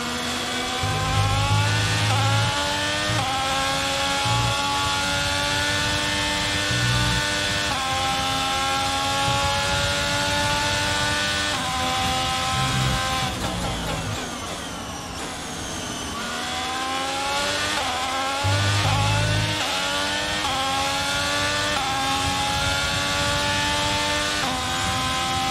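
A racing car engine screams at high revs, rising in pitch through sharp gear shifts.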